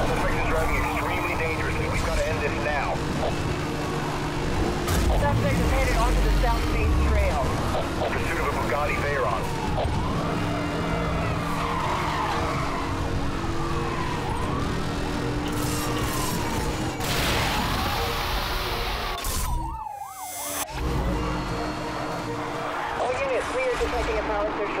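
Police sirens wail, rising and falling.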